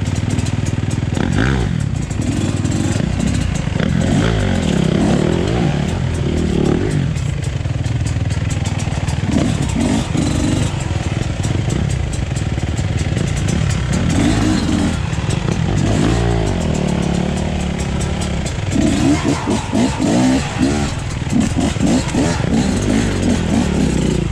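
A second dirt bike engine revs and putters a little way ahead.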